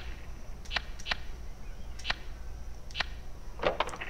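Keypad buttons click as they are pressed.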